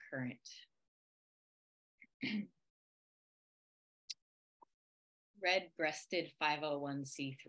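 A young woman speaks calmly over an online call, with pauses.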